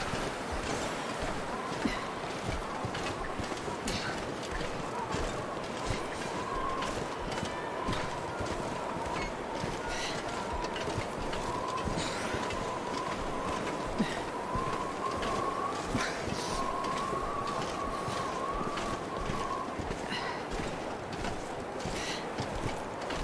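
Footsteps crunch in snow at an even pace.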